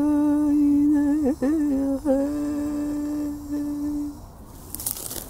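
A man sings long, steady humming notes close by.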